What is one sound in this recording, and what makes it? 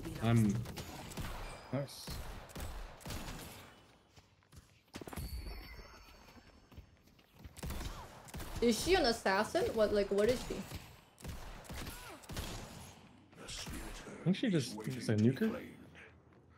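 Weapons fire in quick, sharp bursts.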